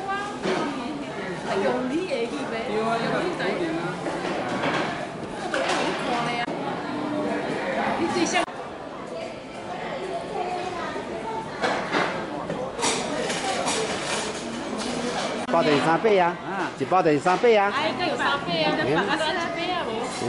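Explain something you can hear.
Men and women chat and laugh in a busy, echoing room.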